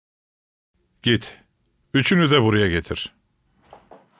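A man speaks loudly and sternly.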